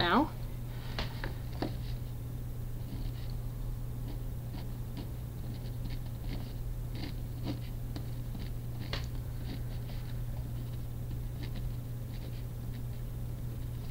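A pen scratches and taps on paper.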